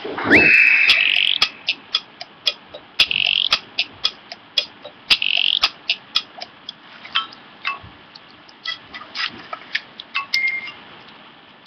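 A game character chatters in quick high babbling blips.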